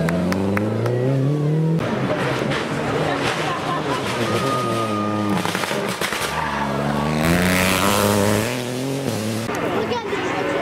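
A rally car engine revs hard and shifts gears as the car speeds past close by.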